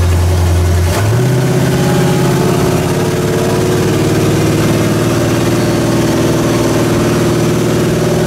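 A large engine revs up to a higher roar.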